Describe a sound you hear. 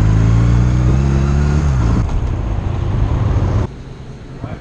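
A motorcycle engine rumbles loudly and slows down.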